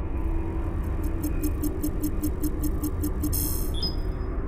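A handheld device beeps rapidly.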